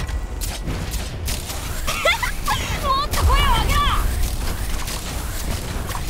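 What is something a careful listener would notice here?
Video game combat effects play, with repeated hits and blasts.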